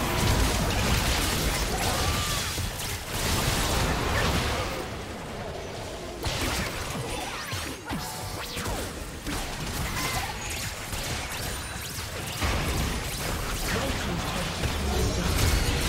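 Magic blasts and crackling spell effects burst during a video game fight.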